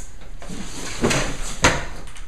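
Metal crutches clatter and knock.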